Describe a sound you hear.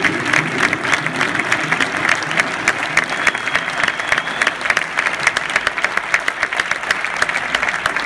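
A live band plays a song in a large echoing hall.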